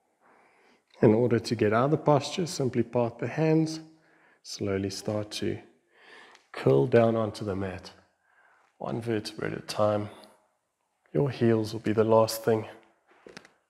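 A man speaks calmly and clearly into a close microphone.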